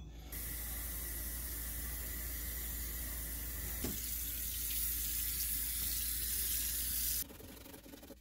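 Water runs from a tap and splashes onto a metal pan.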